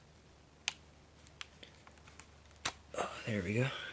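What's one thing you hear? A small plug clicks into a laptop socket.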